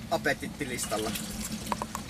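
Liquid pours from a bottle into a funnel.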